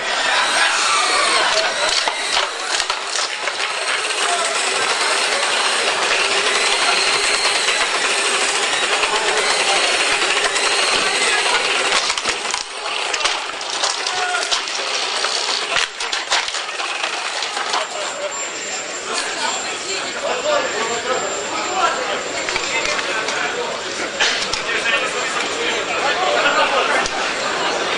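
A crowd of people talks and shouts loudly in a large echoing hall.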